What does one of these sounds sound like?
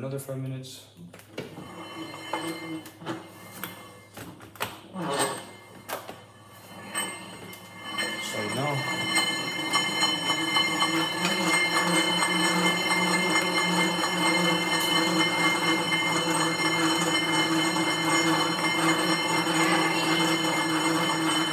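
An exercise bike whirs and hums steadily as someone pedals hard.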